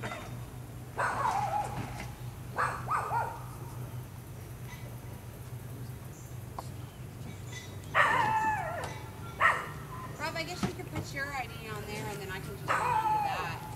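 A woman talks with animation outdoors.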